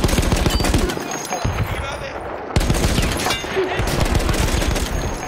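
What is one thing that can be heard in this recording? A machine gun fires in loud, rapid bursts.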